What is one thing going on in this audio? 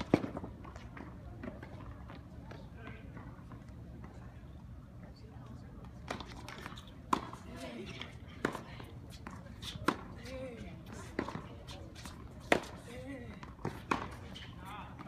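A tennis ball is struck sharply with a racket, again and again.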